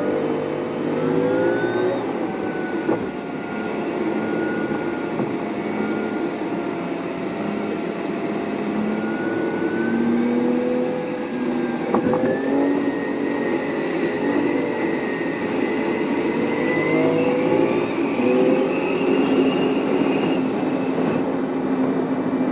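Traffic rumbles past on a busy highway.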